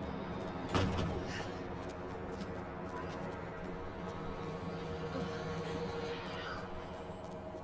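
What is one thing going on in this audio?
Footsteps tap steadily on hard stairs.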